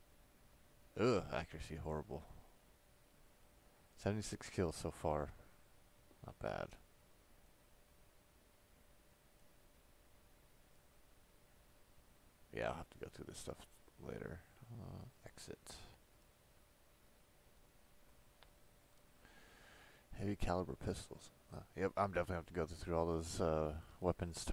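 A man talks animatedly into a close microphone, in short bursts.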